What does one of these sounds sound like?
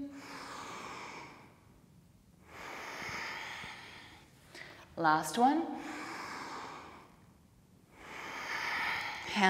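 A young woman breathes slowly and deeply, close by.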